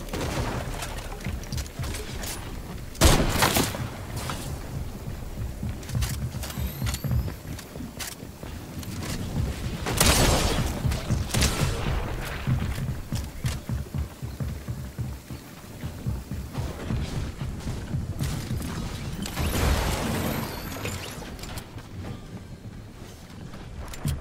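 Footsteps thud quickly across a roof and wooden floors.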